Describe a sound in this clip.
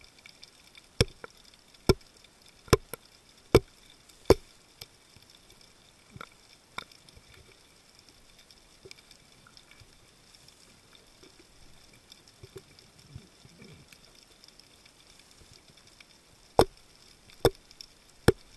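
A rock knocks sharply against a hard reef underwater, several times.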